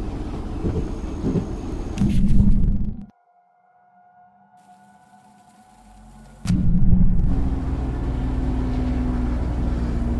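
A train engine rumbles low and steady.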